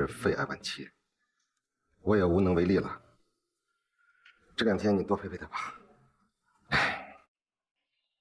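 A young man speaks in a low voice.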